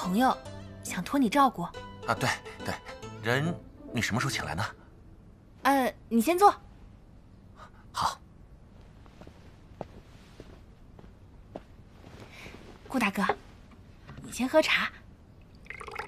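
A young woman speaks with a lively, questioning tone.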